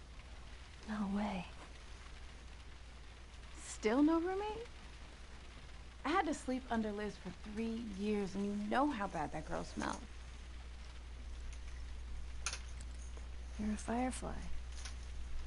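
A young girl speaks softly and casually.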